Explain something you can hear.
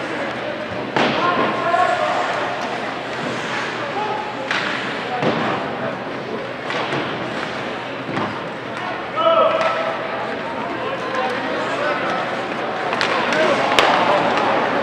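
Hockey sticks clack on the ice.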